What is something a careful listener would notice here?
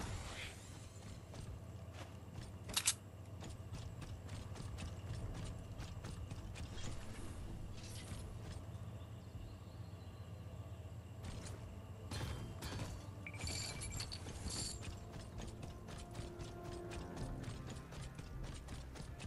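Quick footsteps patter on grass and pavement.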